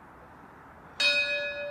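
A bugle sounds a loud, clear note outdoors.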